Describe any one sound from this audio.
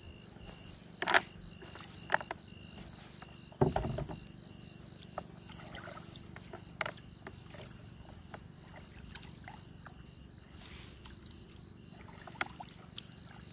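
Knocks thud against the hull of a wooden boat.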